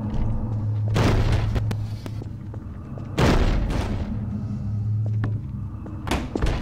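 A wooden crate is struck and bangs loudly several times.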